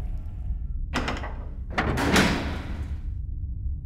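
A heavy metal door creaks and groans open.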